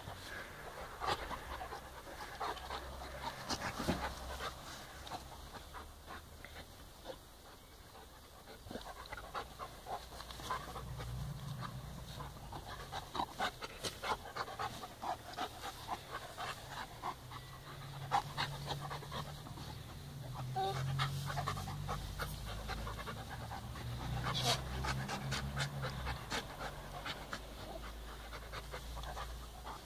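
Two dogs growl and snarl while play-fighting close by.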